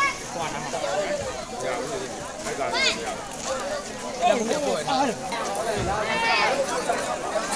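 A crowd of men, women and children chatter loudly nearby.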